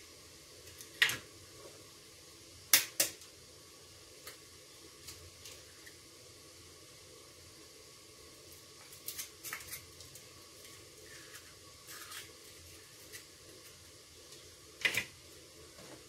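An eggshell cracks against a hard edge.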